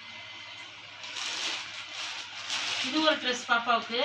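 Plastic wrapping rustles and crinkles as clothes are handled.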